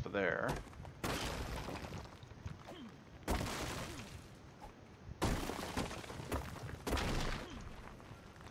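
A hatchet strikes rock with heavy chopping thuds.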